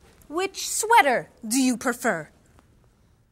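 A young woman speaks brightly and with animation.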